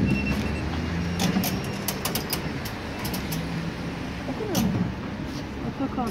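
A turnstile clicks as people pass through.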